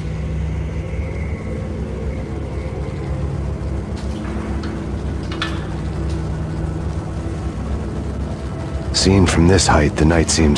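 An elevator hums steadily as it rises.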